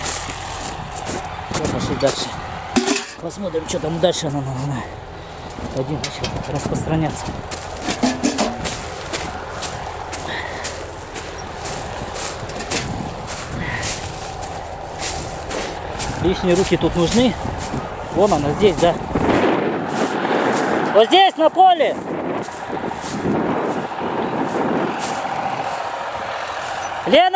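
Burning grass crackles and pops close by.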